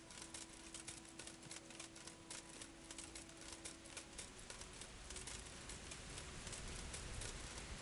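Footsteps crunch steadily over dry forest ground.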